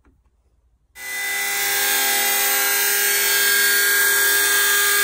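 A power tool whirs loudly and steadily.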